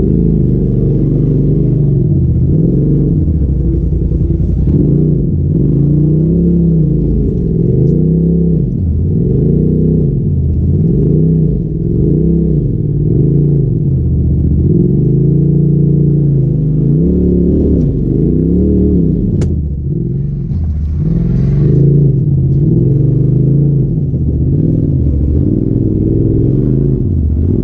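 A vehicle engine revs up and down, close by.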